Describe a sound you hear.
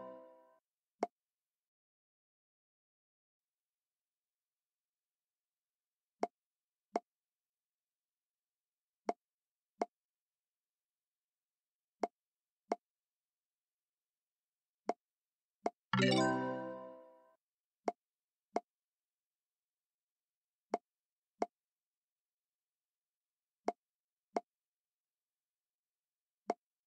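Short soft clicks sound as game balls are picked up and dropped.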